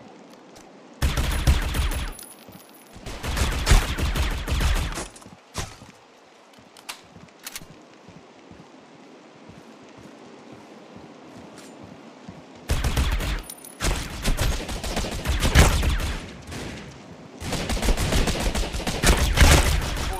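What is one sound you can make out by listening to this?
Rapid gunfire bursts out in loud, repeated volleys.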